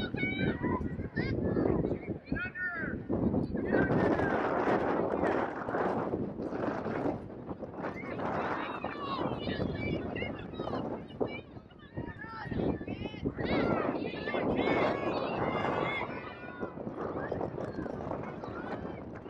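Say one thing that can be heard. Young women and spectators shout and call out across an open outdoor field.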